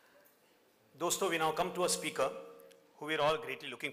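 A man speaks calmly into a microphone in a large hall.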